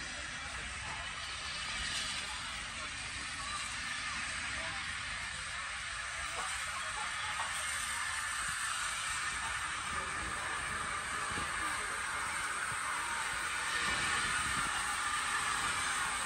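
A steam tank locomotive rolls slowly into a station.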